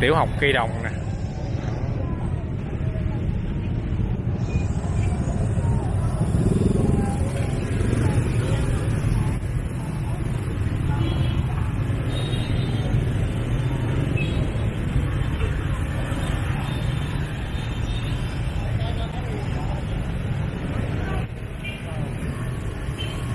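Many motorbike engines idle and rumble close by in dense traffic.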